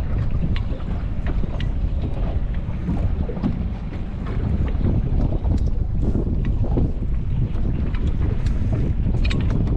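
Water laps and slaps against a boat's hull.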